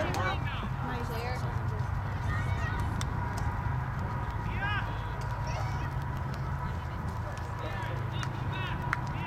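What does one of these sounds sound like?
Young girls shout to each other across an open field.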